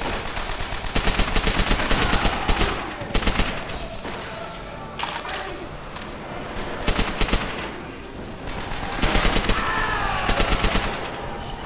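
A submachine gun fires rapid bursts nearby.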